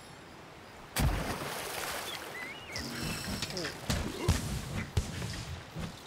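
A heavy blade swings and strikes with sharp whooshing blows.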